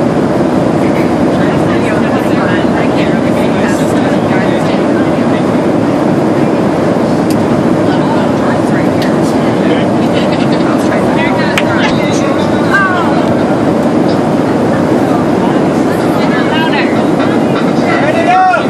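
A crowd of passengers chatters and laughs nearby.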